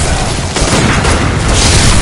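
Flames burst with a roar.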